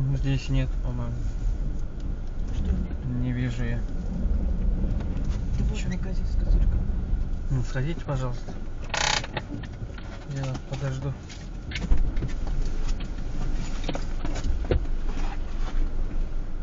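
A car engine rumbles low and steady.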